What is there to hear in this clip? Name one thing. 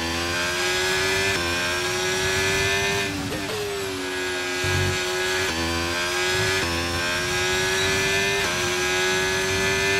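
A racing car engine roars at high revs, shifting up through the gears.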